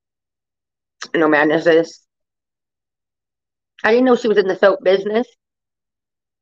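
A woman speaks briefly and calmly into a microphone.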